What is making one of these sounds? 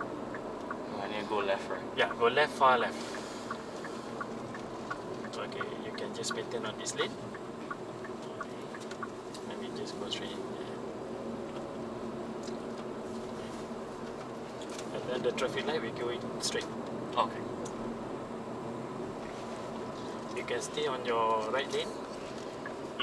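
A man talks with animation close by, inside a car.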